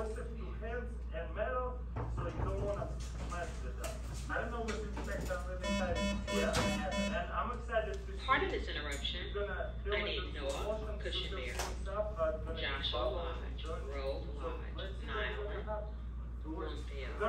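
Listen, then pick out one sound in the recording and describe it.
A man speaks calmly through a loudspeaker.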